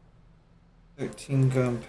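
A man speaks into a microphone, close by.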